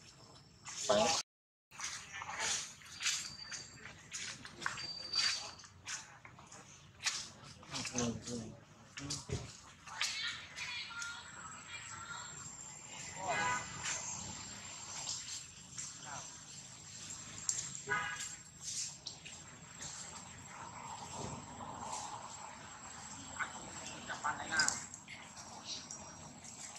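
Dry leaves rustle as monkeys move about.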